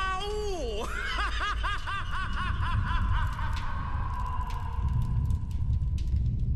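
Rocks crumble and break apart with a deep rumble.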